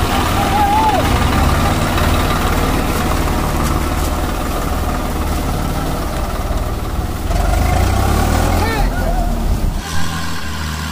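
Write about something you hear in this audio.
A tractor engine rumbles steadily up close.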